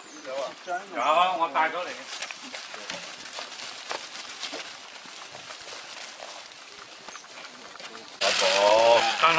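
An elderly man talks nearby.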